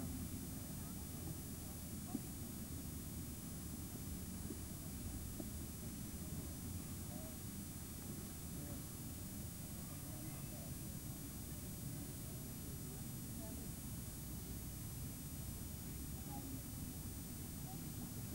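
Wind rumbles steadily across an open field.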